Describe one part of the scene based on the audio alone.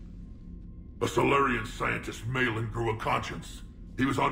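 A man speaks in a deep, gravelly voice, calmly, close up.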